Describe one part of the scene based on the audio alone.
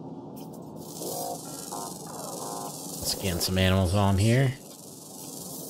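Electronic game chimes ring out as a scan completes.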